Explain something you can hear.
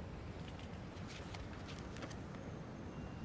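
Papers rustle softly as they are handled.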